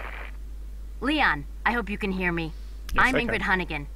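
A young woman speaks calmly over a radio.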